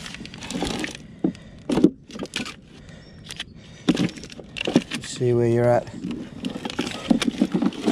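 Packets thud softly as they are dropped into a plastic box.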